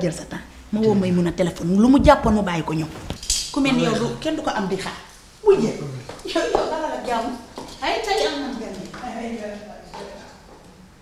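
A woman speaks with agitation, close by.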